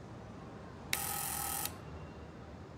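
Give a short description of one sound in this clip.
An intercom buzzer buzzes sharply.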